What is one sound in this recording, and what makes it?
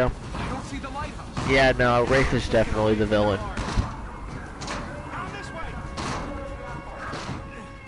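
Footsteps clatter across a tin roof.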